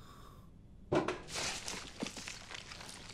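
A metal tin's lid clicks and scrapes open.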